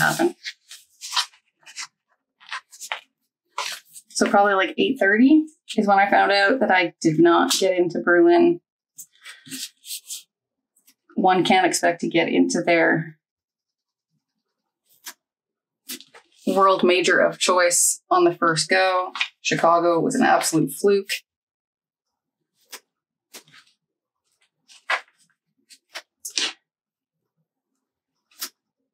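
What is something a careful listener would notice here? A sheet of sticker paper rustles and crinkles as it is handled.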